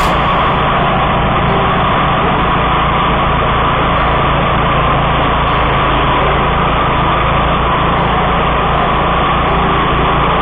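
A mower engine roars loudly and steadily close by.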